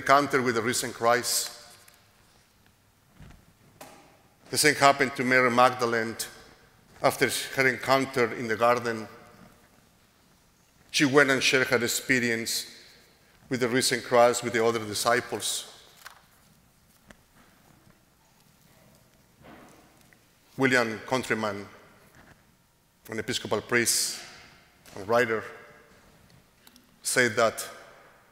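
A middle-aged man speaks calmly through a microphone in a large echoing hall, pausing between phrases.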